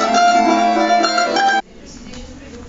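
Acoustic guitars strum a tune.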